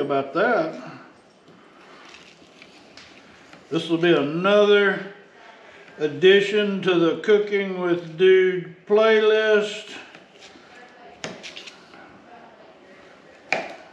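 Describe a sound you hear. A knife slices through fish on a cutting board.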